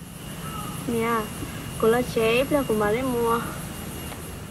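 A young woman talks nearby in a friendly way.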